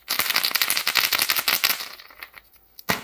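Fingers rub and scratch noisily over a rough glittery shell.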